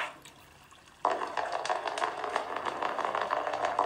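A game on a phone plays lively music through a small speaker.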